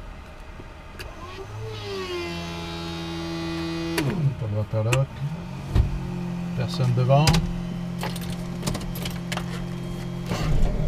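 A small aircraft engine starts up and then hums steadily.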